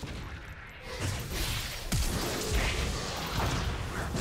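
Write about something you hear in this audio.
Magic blasts whoosh and crackle in a fast fight.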